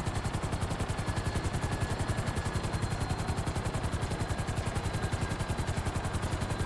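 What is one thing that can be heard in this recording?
Helicopter rotor blades chop rapidly and steadily close by.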